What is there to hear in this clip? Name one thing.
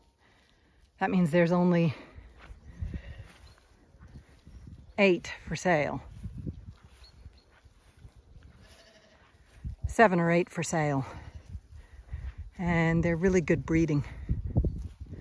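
Sheep bleat loudly nearby, several times.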